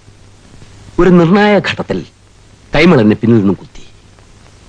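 An older man speaks in a pained, emotional voice close by.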